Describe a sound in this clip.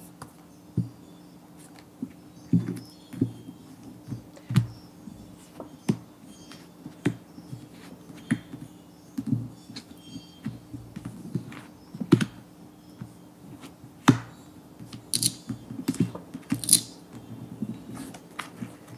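Cards slide and tap on a soft tabletop.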